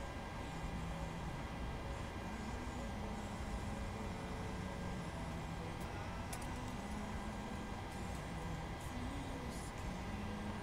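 Aircraft engines drone steadily in the background.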